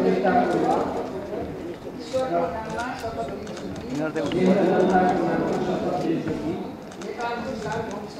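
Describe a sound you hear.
A group of men recite together in unison, reading out.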